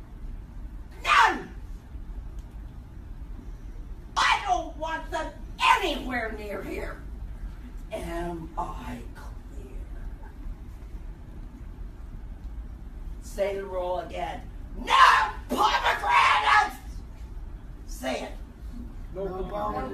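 A middle-aged woman speaks loudly and sharply in a room, with short pauses between outbursts.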